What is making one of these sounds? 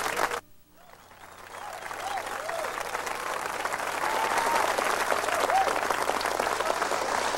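A saxophone plays a jazz line.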